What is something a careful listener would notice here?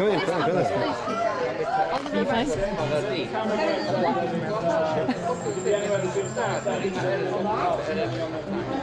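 An elderly woman reads out with feeling, heard through an online call.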